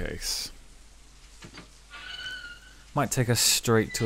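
A metal gate creaks and clanks open.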